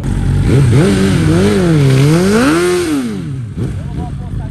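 A sport motorcycle engine revs hard.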